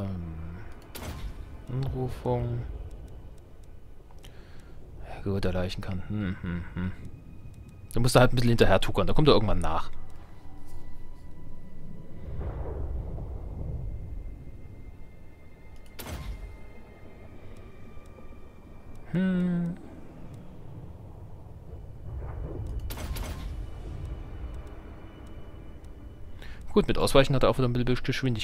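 A game menu gives short clicking sounds as options are chosen.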